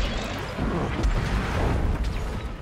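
A machine creature explodes with a burst of sparks.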